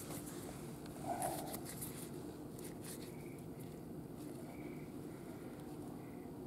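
A plastic glove rustles against skin and bedding.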